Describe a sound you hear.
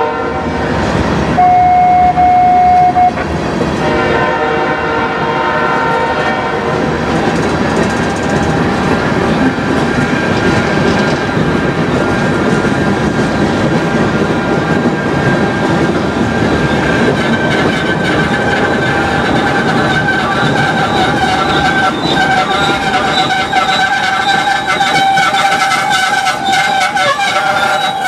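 A railway crossing bell rings.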